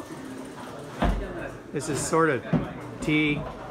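Feet thump on a hollow platform.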